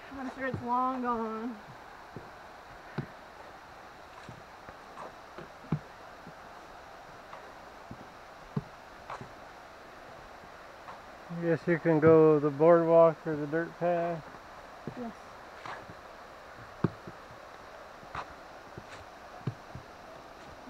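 Footsteps knock softly on wooden boards.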